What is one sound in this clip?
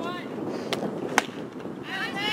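A ball smacks into a catcher's mitt.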